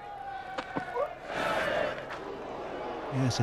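A crowd cheers and applauds loudly outdoors.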